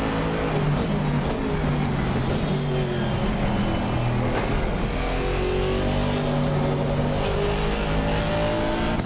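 A racing car engine roars and shifts pitch as the car speeds along.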